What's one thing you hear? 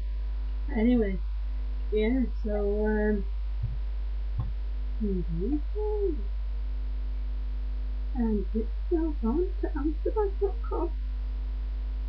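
A young woman talks casually, close to a microphone.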